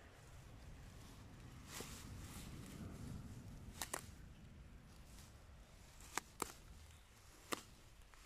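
Leafy plants rustle.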